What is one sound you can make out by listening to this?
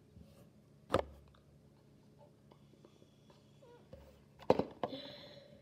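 A plastic box clicks and knocks as it is handled.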